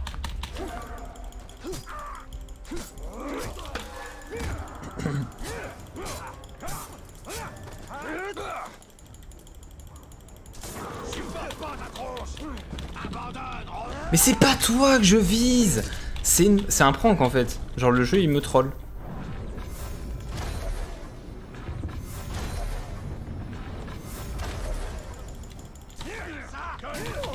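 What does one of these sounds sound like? Blades clash and strike in quick fights.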